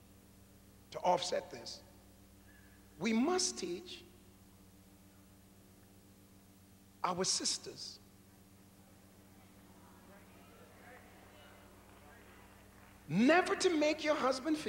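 A middle-aged man preaches forcefully into a microphone in short bursts, with long pauses.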